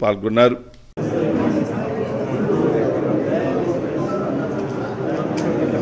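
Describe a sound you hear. A crowd of men and women murmur and chatter nearby.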